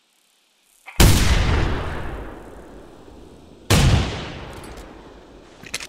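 A shotgun fires two loud shots that echo and roll away.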